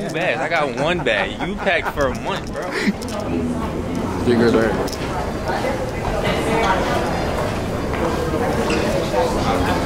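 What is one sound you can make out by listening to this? Many voices murmur in a large, echoing hall.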